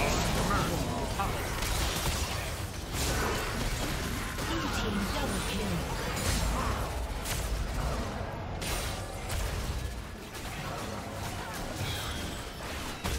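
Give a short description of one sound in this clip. Fantasy battle effects clash and crackle with magic blasts and hits.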